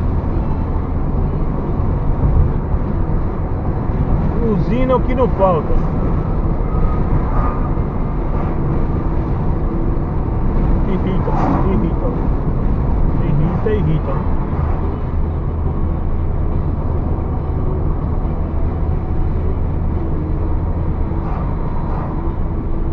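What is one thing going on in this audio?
Tyres roar steadily on the road.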